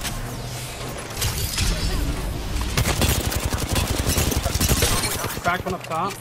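An automatic rifle fires rapid bursts in a video game.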